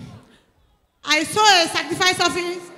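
A woman speaks into a microphone in short phrases.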